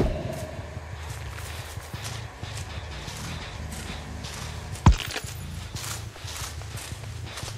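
Footsteps thud steadily.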